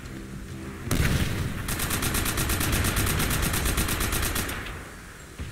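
A heavy machine gun fires in a rapid, rattling burst.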